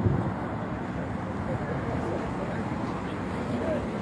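A car engine idles close by.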